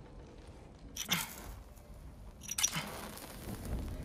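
Sharp sparks snap.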